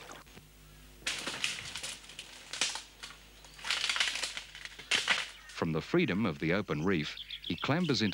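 Dry branches crack and snap underfoot.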